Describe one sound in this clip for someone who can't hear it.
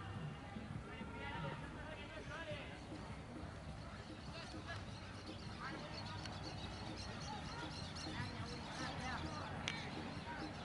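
Young men shout and call to each other outdoors, some distance away.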